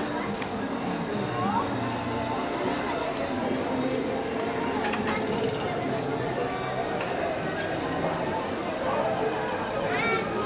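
Town traffic and street bustle hum steadily from the street below, outdoors.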